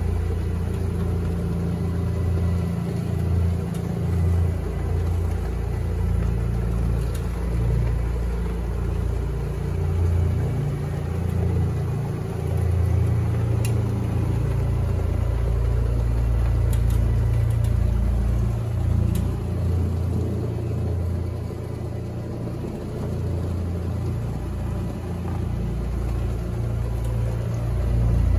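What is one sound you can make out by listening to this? A floor machine's motor hums steadily as its pad scrubs the carpet.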